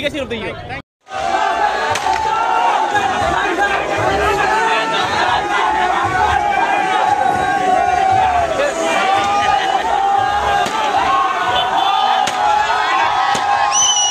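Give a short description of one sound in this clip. A large crowd cheers and shouts excitedly outdoors.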